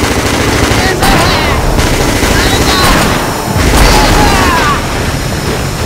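Gunshots boom and echo.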